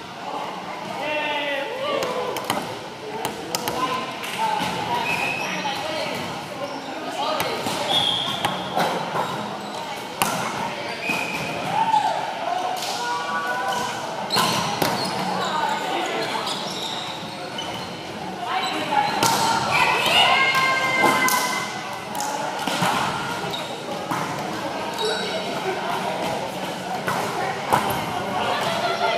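Young people chatter and call out in a large echoing gym.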